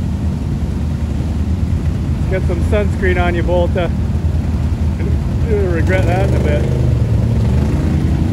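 An ATV churns and splashes through deep mud.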